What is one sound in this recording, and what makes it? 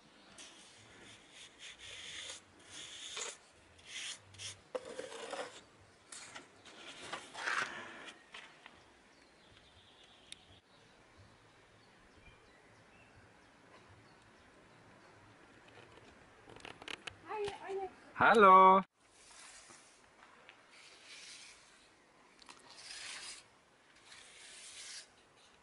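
A trowel scrapes and spreads wet cement.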